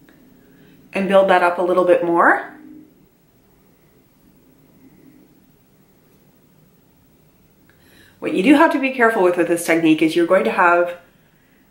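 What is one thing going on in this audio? A woman speaks close by, calmly and with animation.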